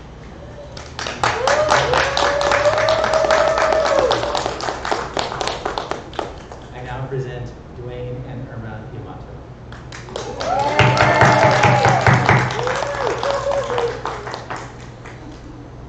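A crowd claps and applauds loudly in a room.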